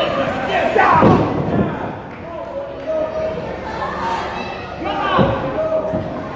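A wrestler thuds onto the ring mat.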